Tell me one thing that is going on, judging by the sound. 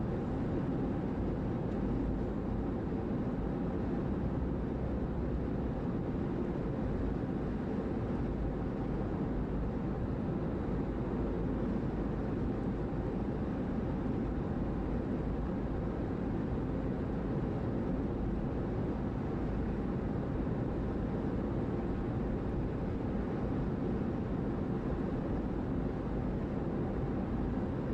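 Tyres roll with a steady rumble on the road.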